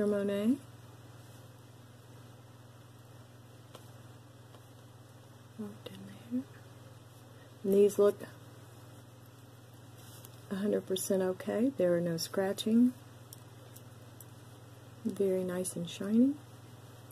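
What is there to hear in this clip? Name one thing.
Metal earrings click softly as they are handled.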